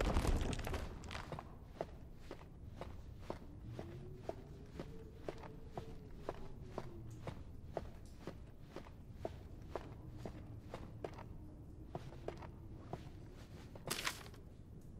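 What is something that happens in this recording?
Footsteps tread steadily on stone.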